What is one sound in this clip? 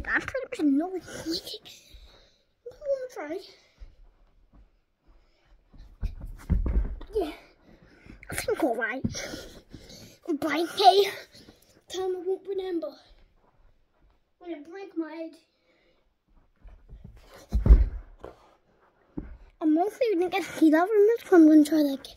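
A young boy talks excitedly close to the microphone.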